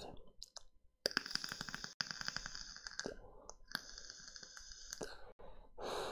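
An electronic cigarette sizzles and crackles as it is drawn on.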